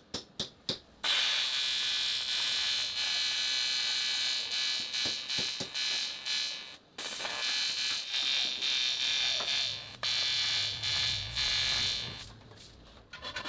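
An electric welding arc crackles and sizzles loudly.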